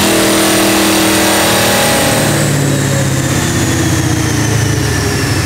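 A powerful car engine roars loudly at high revs, then winds down.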